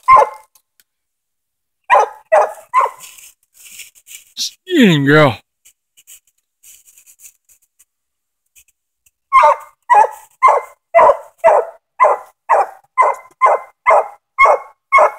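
A fox barks sharply and repeatedly nearby.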